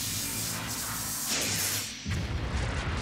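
Electricity crackles and fizzes loudly.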